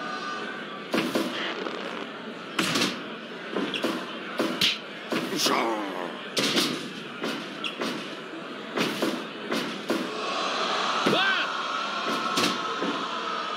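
Blows land with sharp slaps and thuds.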